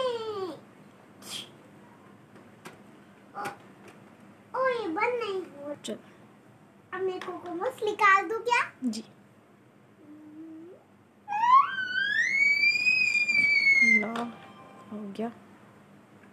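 A young girl talks and sings playfully close by.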